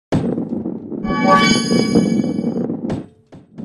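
A bright chime rings out as a ball passes through a hoop.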